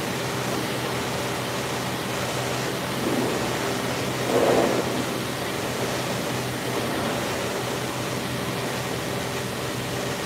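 Water sprays steadily from a pressure washer, echoing in a large metal-roofed hall.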